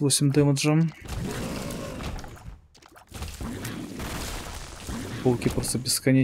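Squelching and splattering game effects burst in a chaotic fight.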